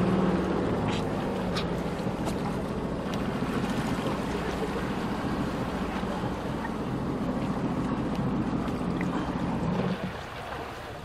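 A personal watercraft engine hums nearby.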